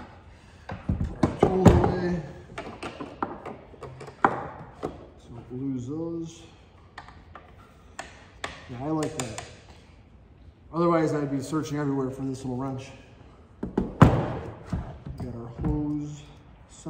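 A plastic tool clicks and knocks against a wooden table.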